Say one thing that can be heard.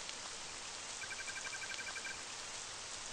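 Short electronic beeps tick rapidly, like letters being typed out, in a retro video game.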